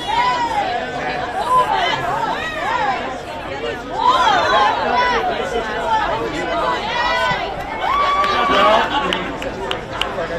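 A crowd cheers and shouts excitedly nearby.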